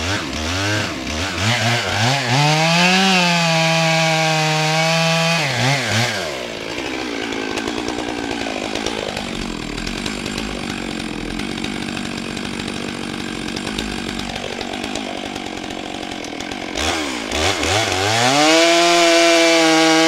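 A chainsaw engine revs loudly, rising and falling in pitch.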